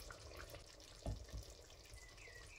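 A plate knocks against the rim of a metal pot.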